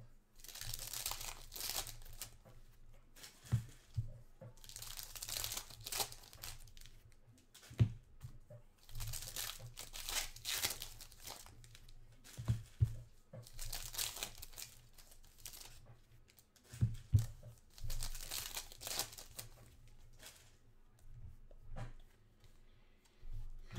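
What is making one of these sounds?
Card packs rustle and crinkle as hands handle them.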